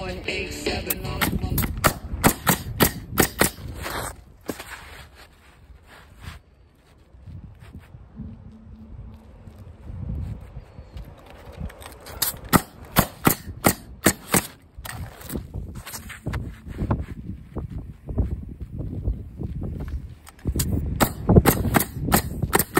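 A nail gun fires in quick bursts of sharp snaps.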